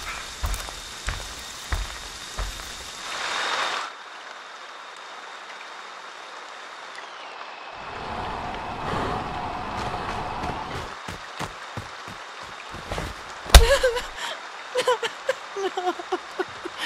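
Heavy footsteps thud on soft ground.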